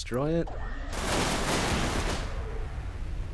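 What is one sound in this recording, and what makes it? A large explosion booms and roars.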